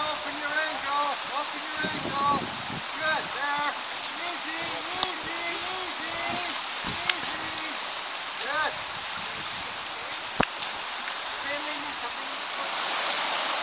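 River water rushes and splashes steadily.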